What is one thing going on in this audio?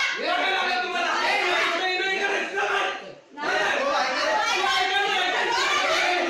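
Several men shout and argue loudly in a crowd.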